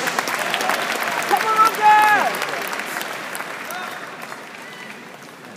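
A large crowd applauds in a big echoing hall, then fades.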